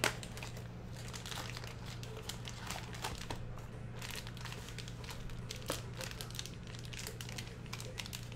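A foil pack crinkles as it is handled.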